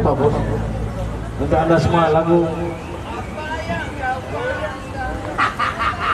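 Acoustic guitars strum.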